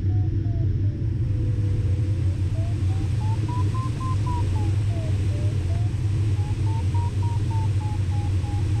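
Wind rushes steadily over a glider's canopy with a low roar.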